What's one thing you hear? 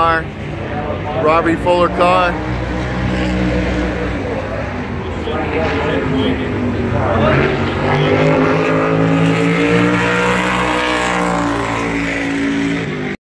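Race car engines rumble and drone steadily nearby.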